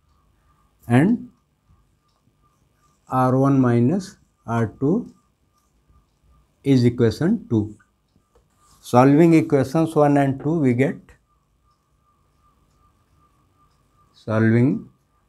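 A man explains calmly and close by, with pauses between his phrases.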